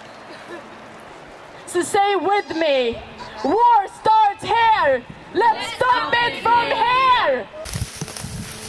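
A woman sings loudly into a microphone.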